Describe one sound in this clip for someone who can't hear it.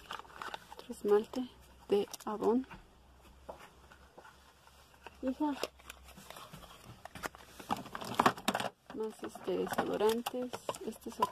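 Plastic containers clatter and rattle as a hand rummages through them.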